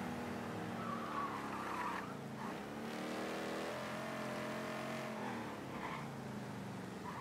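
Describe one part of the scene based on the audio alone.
A car engine hums steadily and rises and falls in pitch as the car drives.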